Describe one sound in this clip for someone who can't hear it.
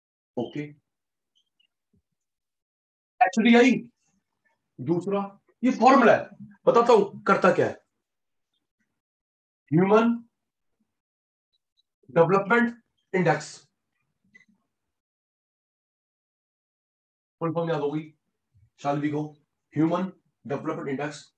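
A man speaks calmly and clearly through a close microphone, in short phrases with pauses.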